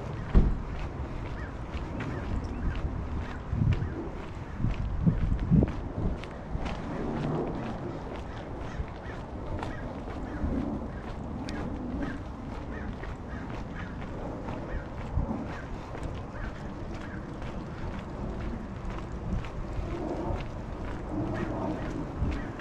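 Footsteps tap steadily on a concrete sidewalk.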